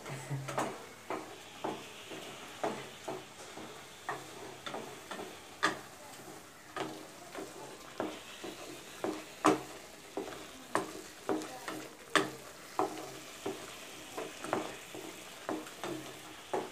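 A ladle scrapes and knocks against a metal pot in a steady rhythm of stirring.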